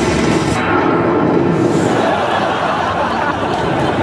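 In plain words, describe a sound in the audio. A blast bursts with a loud boom.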